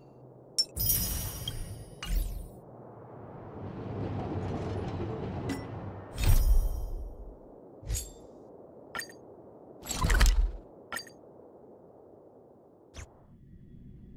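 Interface clicks and whooshes sound as game menus open and close.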